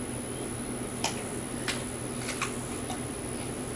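A deer crunches food as it eats from a hand.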